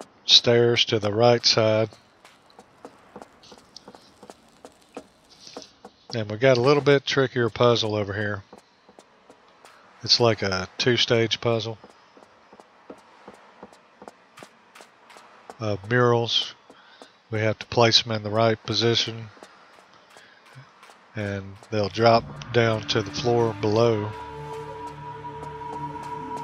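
Footsteps patter quickly on a wooden floor.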